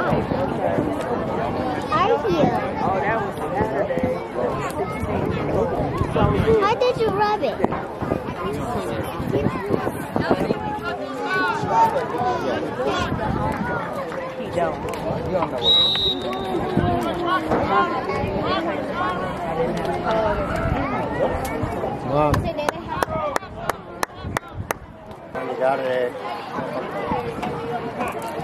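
Children and men talk and call out across an open field outdoors.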